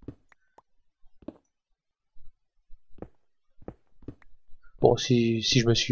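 Stone blocks crack and crumble in short bursts as a pickaxe breaks them.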